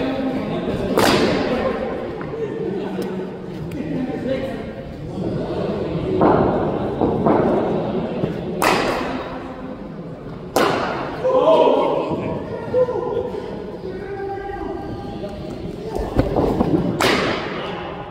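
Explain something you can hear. A cricket bat cracks sharply against a ball, several times.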